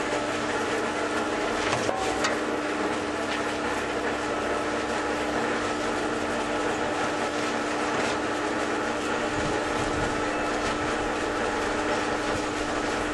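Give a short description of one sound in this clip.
A cement mixer hums and rumbles steadily.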